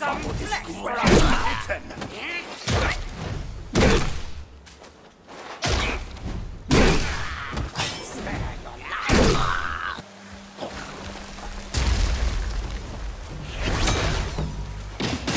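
Heavy blows land in a fight, with sharp thuds and crashes.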